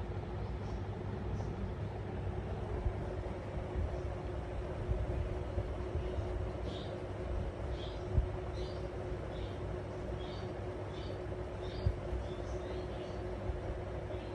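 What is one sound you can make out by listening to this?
A cockatiel chirps softly in short, repeated calls close by.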